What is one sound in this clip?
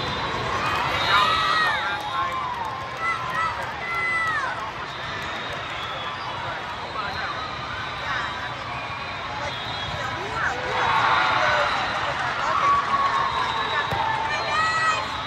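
Young women shout and cheer on the court.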